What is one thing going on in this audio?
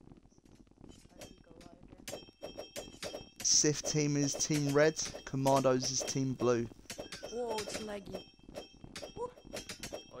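Swords clash and clang repeatedly in a battle.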